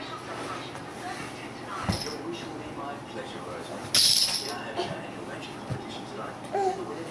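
A baby crawls across a carpet with soft rustling.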